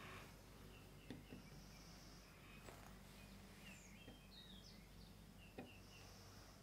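A screwdriver scrapes and clicks against a metal screw.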